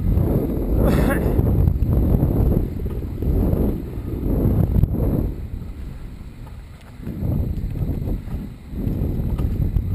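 Tyres roll and crunch over a bumpy dirt trail.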